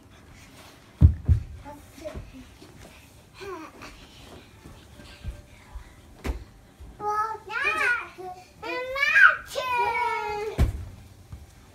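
Children thump onto a soft couch.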